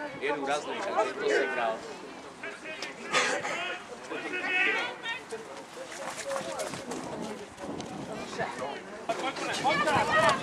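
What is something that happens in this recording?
A man close by talks and calls out with animation.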